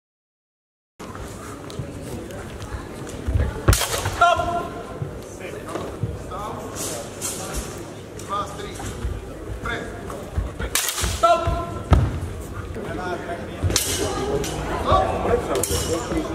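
People chatter in a large echoing hall.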